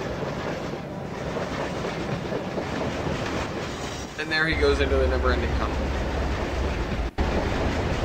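A train rumbles along the tracks.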